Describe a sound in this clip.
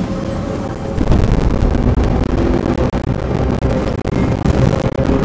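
A spacecraft's engines roar loudly as it takes off.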